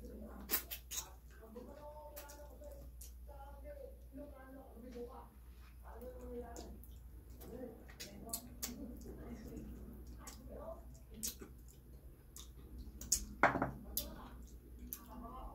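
A woman chews and slurps food noisily, close by.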